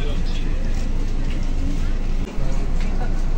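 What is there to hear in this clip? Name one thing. A crowd of people chatter.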